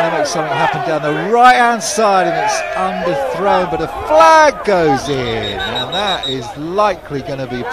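A crowd of players on the sideline cheers and shouts excitedly.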